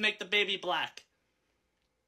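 A young man speaks briefly through a microphone.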